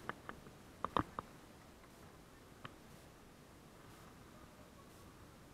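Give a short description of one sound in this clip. A shallow stream flows gently nearby.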